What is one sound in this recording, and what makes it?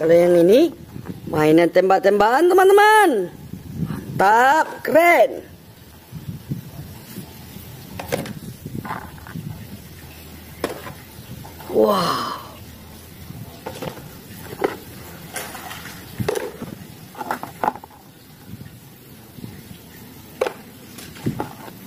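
Plastic toys knock and clatter against a hard surface.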